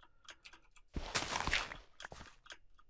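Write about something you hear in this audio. Dirt crunches as it is dug away.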